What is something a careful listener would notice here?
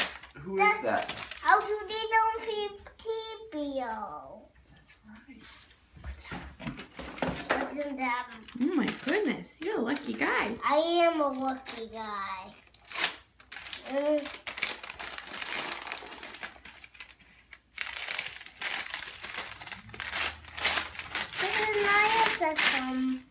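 Wrapping paper and packaging crinkle and tear.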